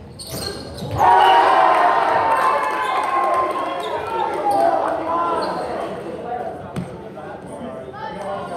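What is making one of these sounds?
Spectators cheer in an echoing gym.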